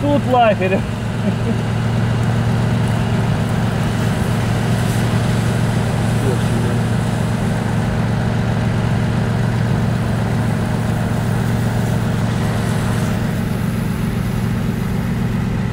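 A second off-road vehicle's engine rumbles steadily nearby.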